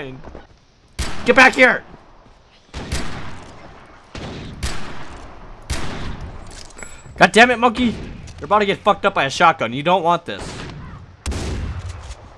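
Gunshots ring out one after another.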